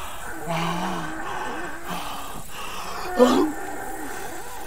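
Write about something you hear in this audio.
A young man cries out loudly in shock.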